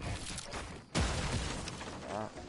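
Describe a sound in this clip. Wooden walls snap into place with loud thuds.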